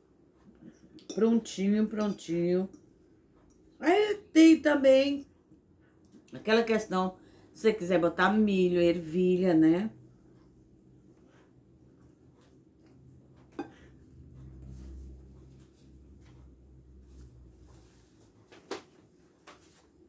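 Cutlery clinks on a plate.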